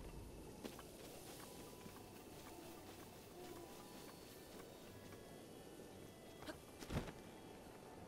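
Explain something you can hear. Quick footsteps run across grass.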